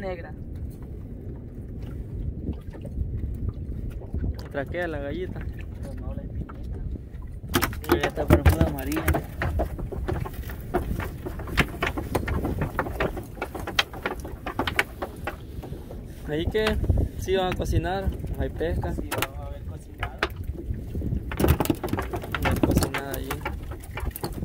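A fishing net rustles as it is hauled over a boat's side.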